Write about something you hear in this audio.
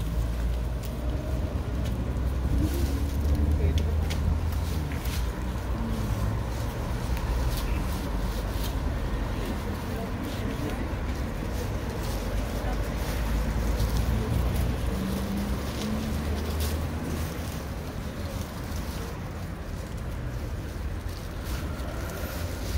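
Dry plants rustle and crackle as people handle them.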